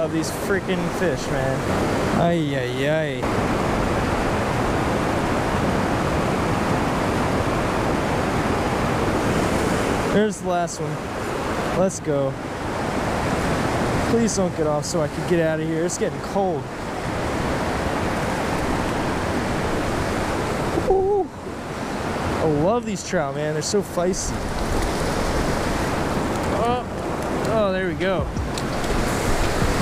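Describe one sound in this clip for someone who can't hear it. Fast water rushes and churns loudly nearby.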